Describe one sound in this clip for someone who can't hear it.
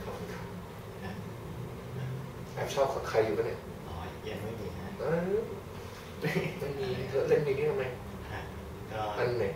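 A young man talks and laughs close by.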